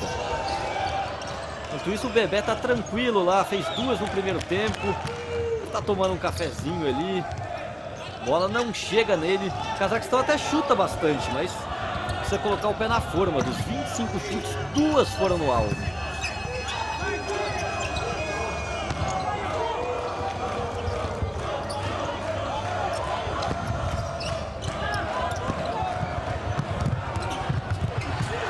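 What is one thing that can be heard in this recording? A crowd cheers in a large indoor arena.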